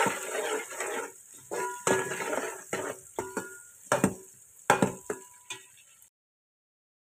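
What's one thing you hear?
Onions sizzle as they fry in hot oil.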